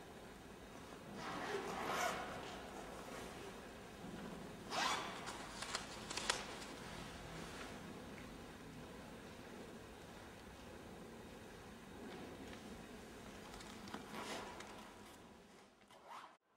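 Clothes rustle as a man shifts and bends forward.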